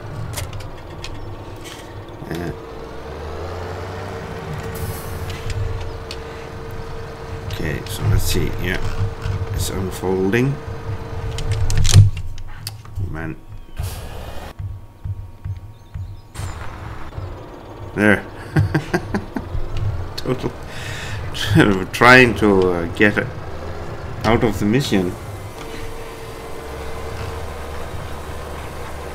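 A diesel tractor engine drones.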